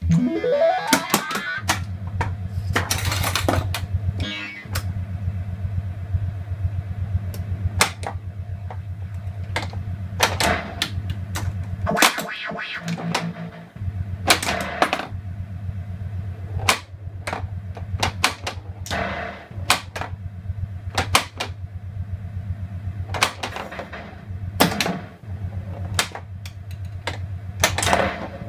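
A pinball machine clicks and clacks sharply now and then.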